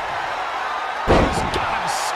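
A heavy body slams down onto a wrestling mat with a loud thud.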